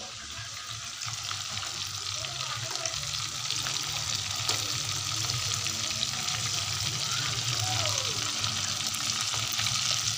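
Hot oil sizzles and crackles steadily as food fries.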